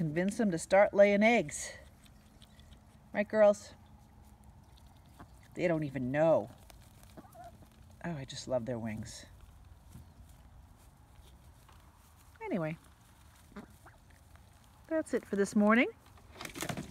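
Ducks quack loudly close by, in short bursts.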